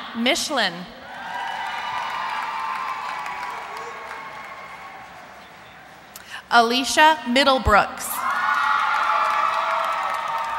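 A crowd cheers and calls out in a large hall.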